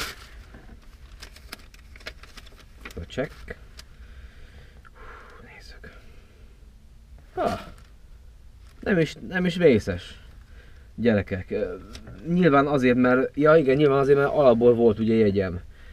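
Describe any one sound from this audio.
Paper rustles and crinkles as a man handles it.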